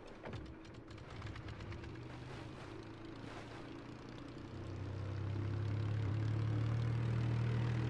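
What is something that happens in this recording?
A seaplane engine drones and grows louder as it speeds up.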